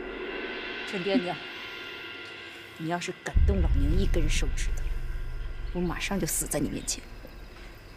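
A woman speaks defiantly and with emotion.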